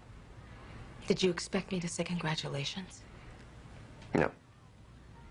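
A middle-aged woman speaks quietly and seriously nearby.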